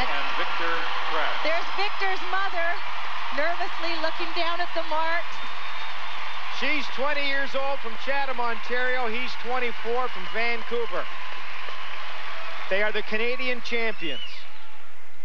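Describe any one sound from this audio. A large crowd applauds and cheers in an echoing arena.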